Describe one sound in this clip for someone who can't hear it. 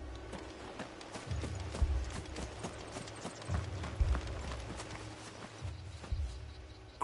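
Footsteps crunch on wet gravel.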